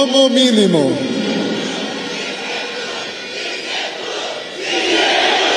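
A man speaks through a microphone over loudspeakers.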